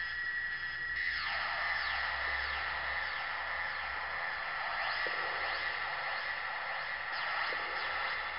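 A synthesizer tone sweeps down and repeats in echoing, falling bleeps.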